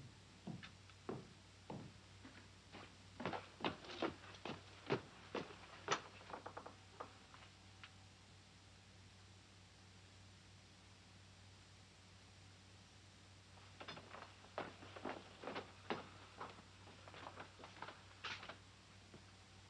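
Slow footsteps thud on wooden stairs nearby.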